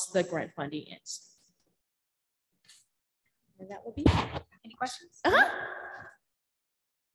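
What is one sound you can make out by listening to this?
A woman speaks into a microphone in a large room.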